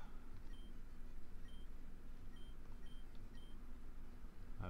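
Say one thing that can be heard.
Short, high electronic beeps chirp at uneven intervals.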